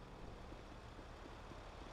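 Footsteps run on pavement.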